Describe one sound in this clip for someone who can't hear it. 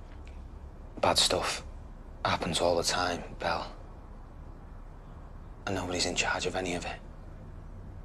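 A young woman talks quietly, close by.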